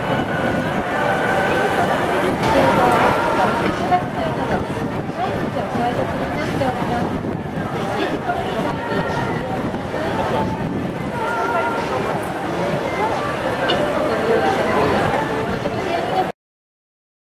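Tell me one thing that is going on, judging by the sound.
Traffic passes by on the street.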